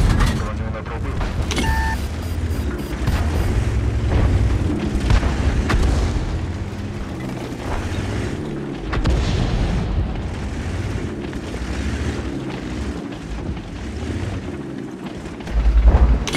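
A tank engine rumbles low and steadily as the tank drives.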